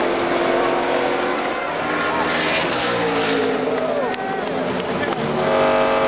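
A crowd of men cheers and shouts.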